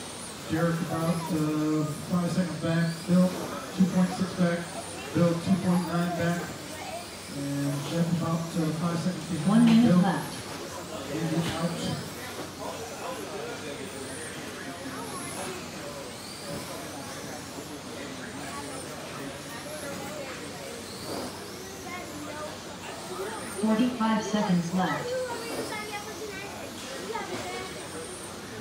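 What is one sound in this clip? Small electric racing cars whine as they speed past and fade away.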